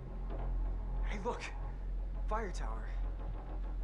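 A young man speaks briefly nearby.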